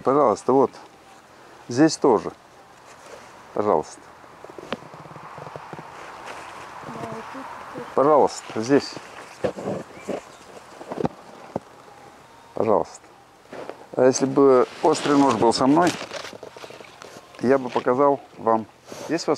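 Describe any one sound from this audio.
Leaves rustle softly as hands handle them.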